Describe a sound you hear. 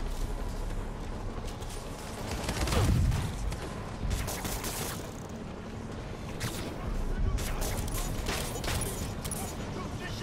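Electricity crackles and snaps in sharp bursts.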